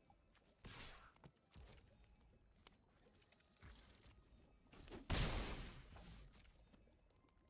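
Card game sound effects whoosh and thud.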